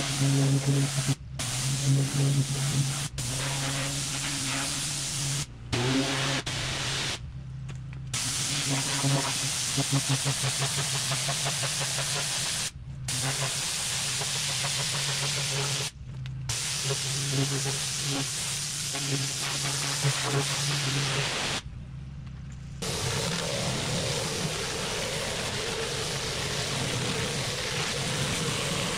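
A pressure washer engine drones steadily nearby.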